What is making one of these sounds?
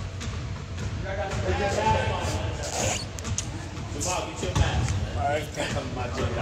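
A young man talks close by, casually.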